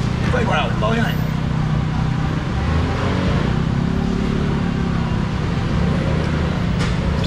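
A crowd of people chatters around.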